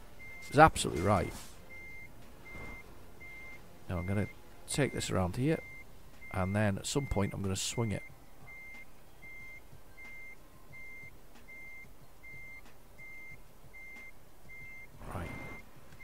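A truck's reversing alarm beeps in a steady, even rhythm.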